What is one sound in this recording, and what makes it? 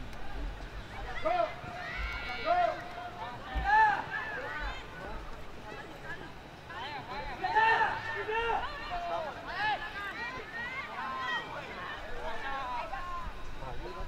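Young players shout to each other in the distance across an open field.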